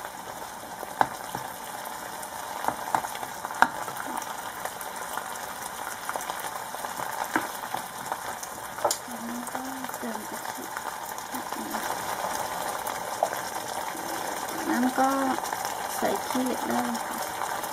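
A thick sauce bubbles and simmers in a pot.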